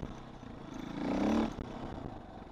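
A dirt bike engine revs up loudly and drops back.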